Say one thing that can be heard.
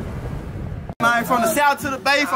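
A young man raps with energy close by.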